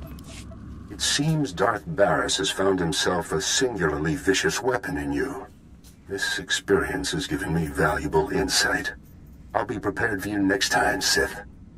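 A man speaks calmly through a crackling transmission.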